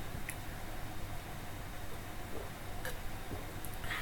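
A young man gulps a drink.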